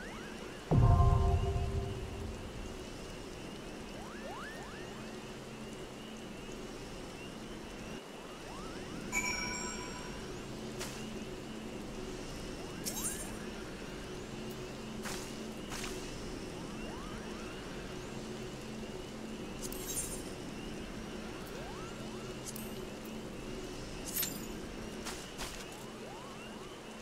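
Soft, steady music plays throughout.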